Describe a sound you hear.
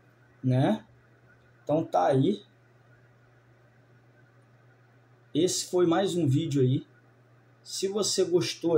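A man speaks calmly close to the microphone, in short bursts with pauses.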